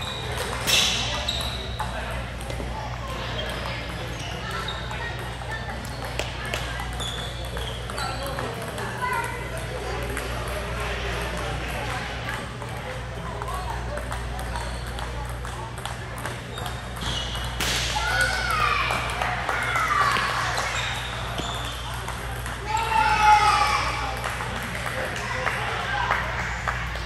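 Men and women talk and call out across a large echoing hall.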